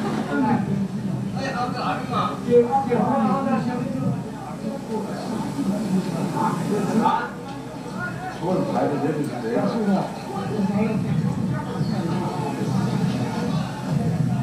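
A crowd of men murmurs and talks outdoors, heard through a loudspeaker.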